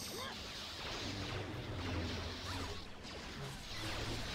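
Lightsabers hum and clash in a fight.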